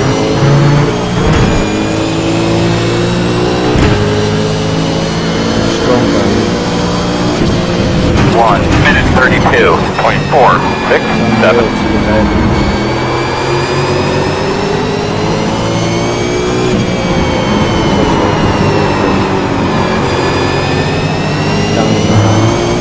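A racing car engine roars loudly, its pitch rising and falling with gear changes.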